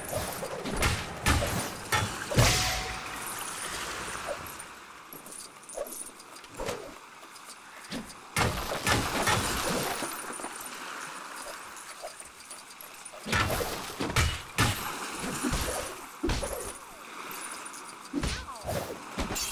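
Game studs jingle and clink as they are collected.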